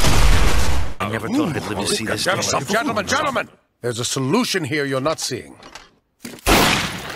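A man speaks persuasively.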